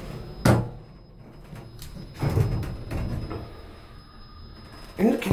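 An elevator hums softly as it moves.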